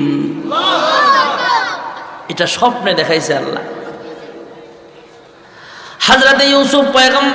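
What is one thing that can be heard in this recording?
A man chants and preaches with feeling through a microphone.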